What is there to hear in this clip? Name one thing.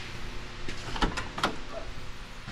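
A truck door clicks open.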